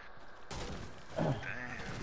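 A pickaxe strikes wood with dull knocks.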